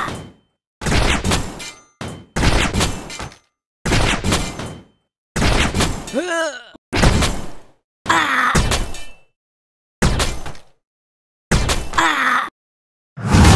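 Game weapons slash and strike in quick bursts.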